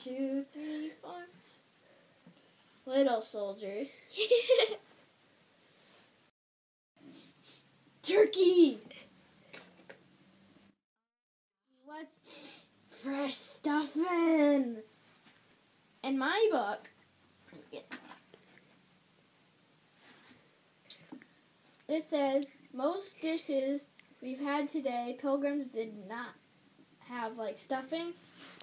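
A young girl speaks close by in playful, animated voices.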